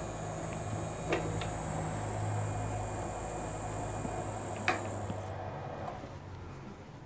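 A metal lathe runs with a steady hum and a high whine.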